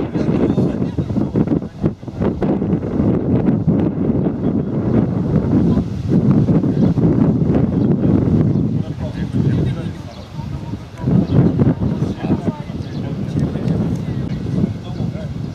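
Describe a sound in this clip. A crowd of men and women chatter outdoors at a distance.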